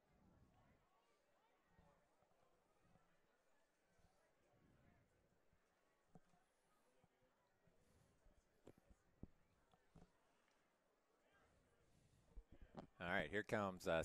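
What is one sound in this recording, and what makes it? A crowd murmurs faintly in the distance.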